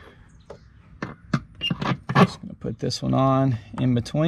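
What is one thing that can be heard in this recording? A rubber hose knocks and clicks as it is pushed onto a fitting.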